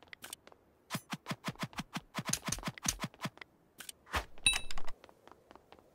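A sword strikes with sharp hits.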